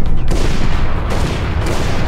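Gunshots crack.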